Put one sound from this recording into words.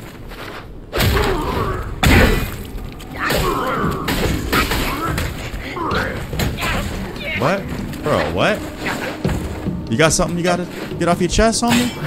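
Heavy weapon blows clash and thud with sharp metallic hits.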